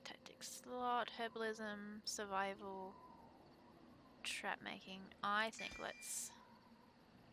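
A young woman talks casually into a microphone, close by.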